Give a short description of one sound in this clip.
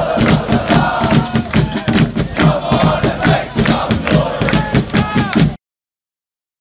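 A large crowd of fans sings and chants loudly, close by.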